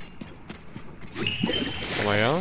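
A weapon swings with a loud whoosh.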